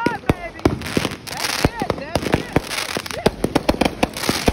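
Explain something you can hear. Fireworks whistle as they shoot up.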